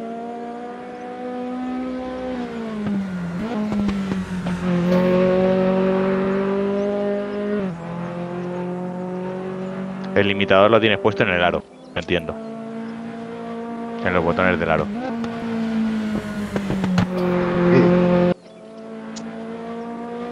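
A racing car engine drones steadily, its pitch rising and falling as the car speeds up and brakes.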